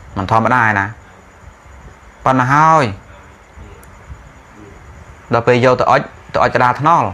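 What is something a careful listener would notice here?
A man speaks calmly and slowly into a close microphone, with pauses.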